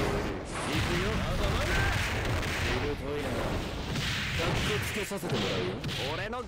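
Magic spells blast and whoosh in a game battle.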